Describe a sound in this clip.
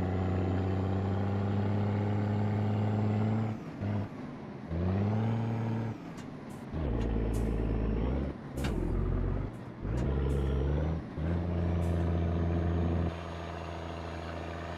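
A truck engine drones steadily, changing pitch as gears shift.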